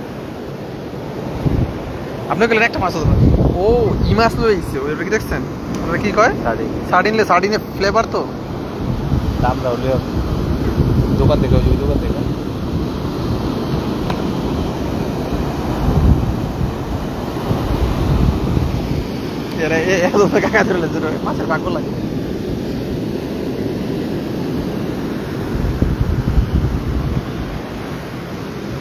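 Waves break and wash up on a shore, with a steady rush.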